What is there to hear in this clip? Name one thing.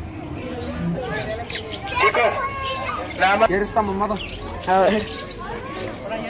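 Young girls chatter with animation nearby.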